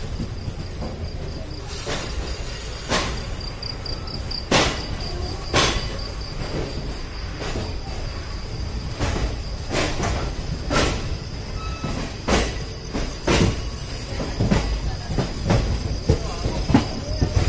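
A passenger train rolls along, its wheels clattering over rail joints and points.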